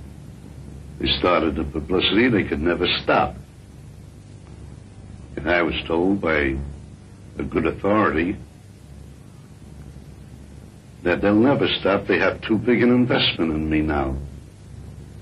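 An elderly man speaks calmly and close by, in short bursts with pauses.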